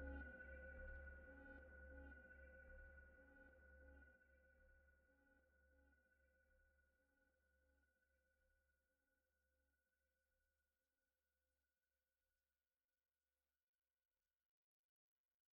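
A synthesizer drone hums with a pulsing rhythm and slowly fades away.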